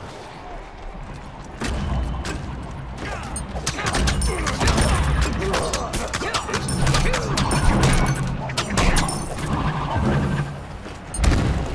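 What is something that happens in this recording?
Blades clash and strike in quick bursts.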